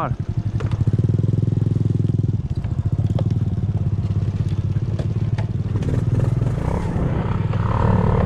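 Tyres rattle and bump over a rough dirt track.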